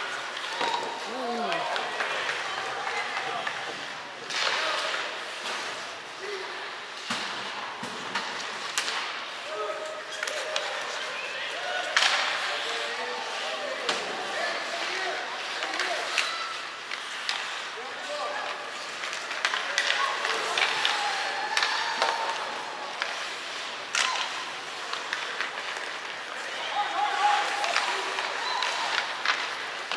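Young players shout to each other across the ice.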